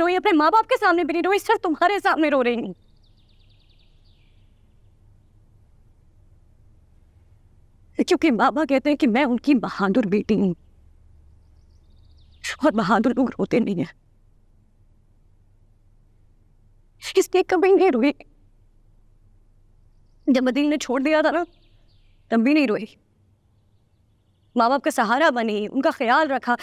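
A young woman speaks tearfully and pleadingly, close by.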